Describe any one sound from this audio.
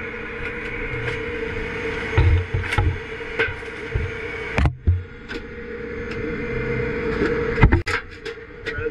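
A plastic fuel can knocks and clunks as it is handled.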